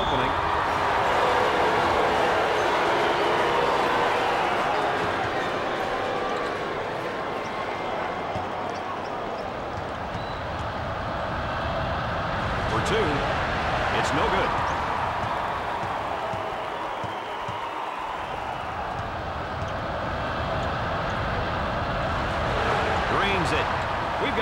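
A crowd murmurs and cheers steadily in a large echoing hall.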